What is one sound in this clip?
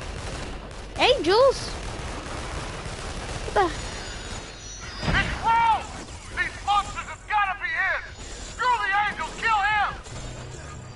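Electric blasts zap and crackle in quick bursts.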